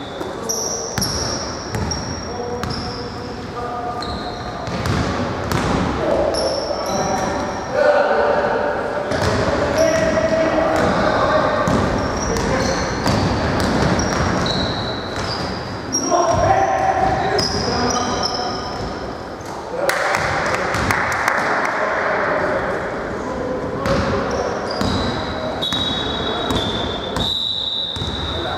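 A basketball bounces on a wooden floor with echoing thuds.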